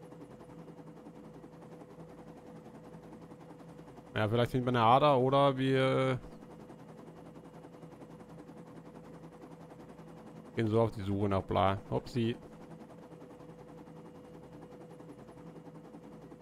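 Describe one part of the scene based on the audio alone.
A helicopter engine hums steadily nearby.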